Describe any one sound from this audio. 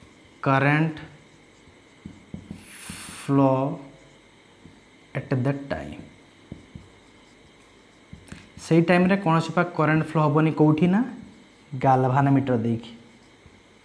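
A young man speaks calmly close by, in short phrases.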